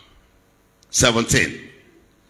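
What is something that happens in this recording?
A man speaks into a microphone, heard over loudspeakers in a large echoing hall.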